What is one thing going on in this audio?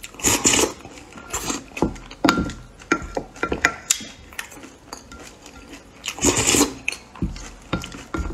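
A wooden spoon scrapes and clinks against a plastic container.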